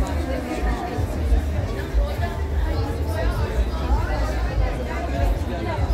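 A young woman asks questions close by.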